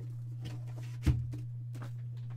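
A cardboard box knocks down onto a table.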